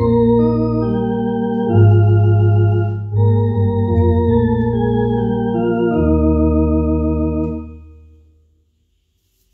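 An electronic organ plays chords that ring out and fade.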